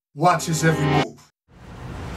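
A man talks on a phone.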